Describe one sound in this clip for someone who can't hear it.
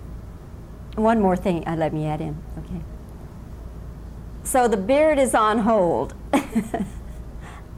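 A middle-aged woman speaks calmly and cheerfully close to a microphone.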